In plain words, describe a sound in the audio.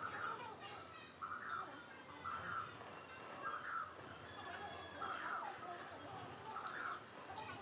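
Matches fizz and crackle as a flame creeps along a line of them.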